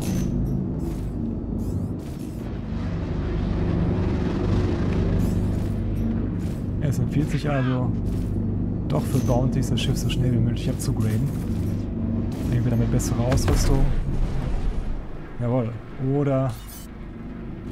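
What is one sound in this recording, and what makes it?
A spaceship engine hums and roars steadily.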